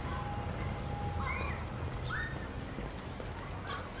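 Footsteps tread on a path.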